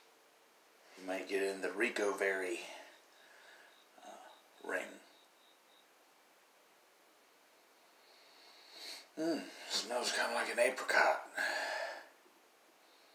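A young man speaks casually, close by.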